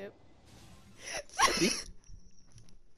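A bright magical whoosh sweeps through with a sparkling shimmer.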